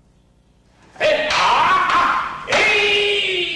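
Wooden practice swords clack together.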